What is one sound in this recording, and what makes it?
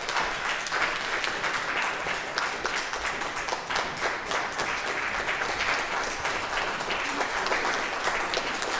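Many people murmur and chat in a room with some echo.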